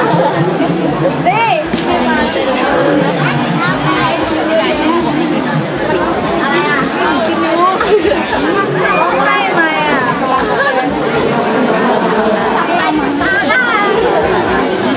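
A crowd of people chatter loudly outdoors.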